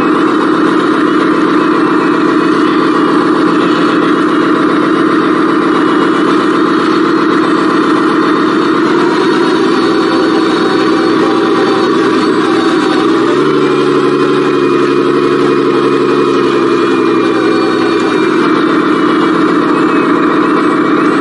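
A small electric motor whines steadily as a toy truck drives over grass.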